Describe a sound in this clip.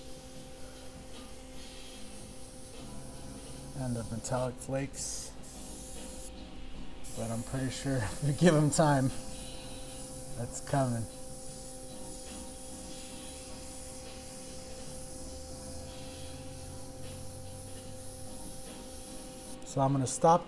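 An airbrush hisses softly as it sprays paint.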